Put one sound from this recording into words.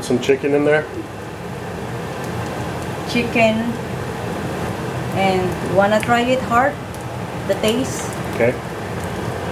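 A ladle scoops soup and pours it back into a pot.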